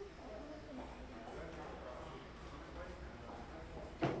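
Footsteps of a man walk across a hard floor.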